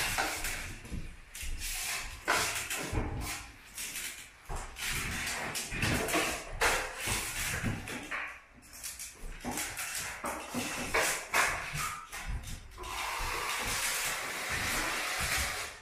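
A drywall knife scrapes joint compound along a seam.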